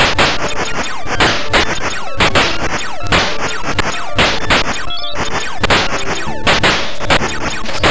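Short electronic explosions burst.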